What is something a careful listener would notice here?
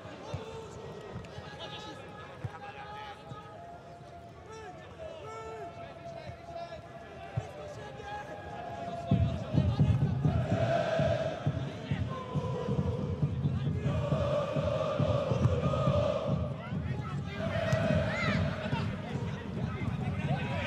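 A crowd of fans chants and sings in an open stadium.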